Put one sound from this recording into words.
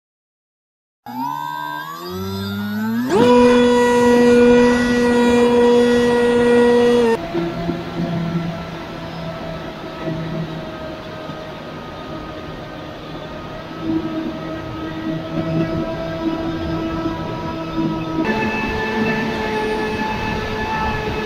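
A small electric motor whines loudly, rising in pitch and then holding steady.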